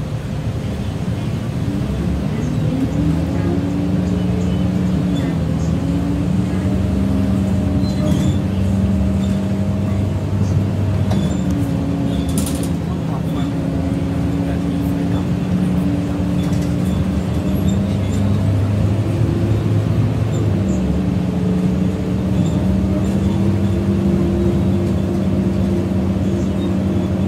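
A bus engine hums and rises and falls in pitch as the bus drives along.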